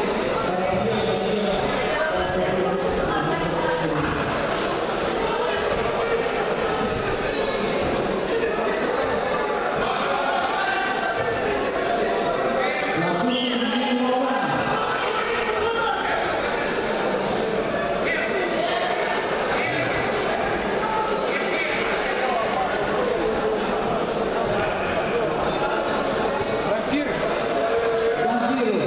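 A crowd of spectators chatters and shouts throughout a large echoing hall.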